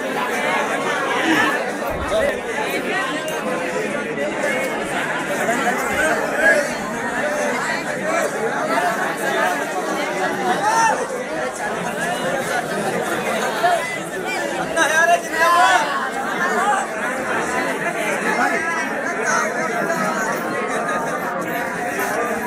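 A large crowd chatters and shouts loudly nearby, outdoors.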